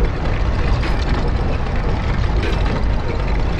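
A heavy stone mechanism grinds as a crank is turned.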